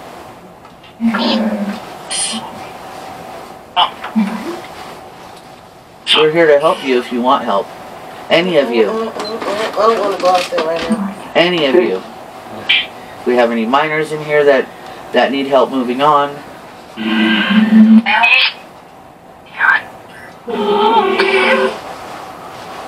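A synthetic voice answers through a small loudspeaker.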